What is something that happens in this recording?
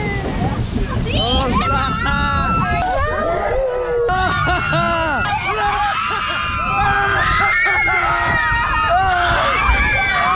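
Water splashes and rushes loudly.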